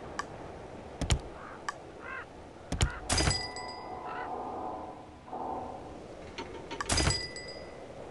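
Game menu clicks tap sharply.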